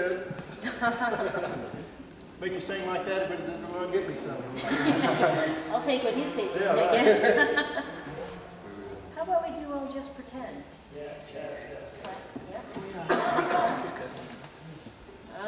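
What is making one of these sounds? A small string band plays a lively tune in a large echoing hall.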